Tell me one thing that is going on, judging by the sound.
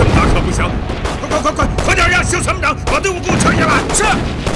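A man shouts orders urgently, close by.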